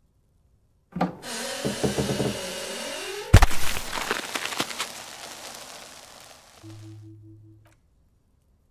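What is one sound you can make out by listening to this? Wooden panels scrape and clatter as they are pulled down.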